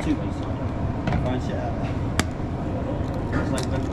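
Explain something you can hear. An egg cracks open against a hard edge.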